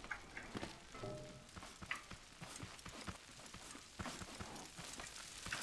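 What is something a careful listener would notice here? Footsteps thud steadily on soft ground.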